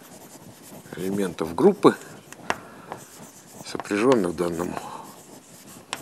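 A middle-aged man speaks calmly in short bursts.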